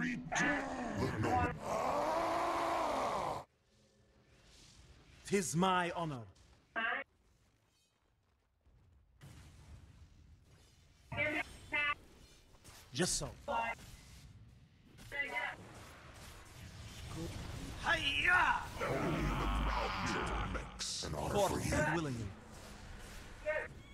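Magic blasts whoosh and crackle in short bursts.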